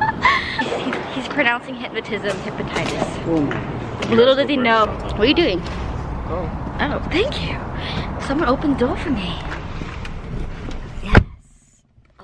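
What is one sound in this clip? A young woman talks excitedly close to the microphone.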